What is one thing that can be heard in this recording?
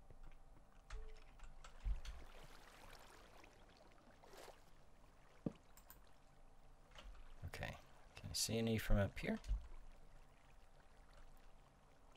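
Water flows and trickles nearby.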